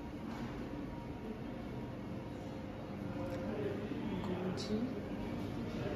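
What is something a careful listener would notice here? Adults murmur quietly nearby in a large echoing hall.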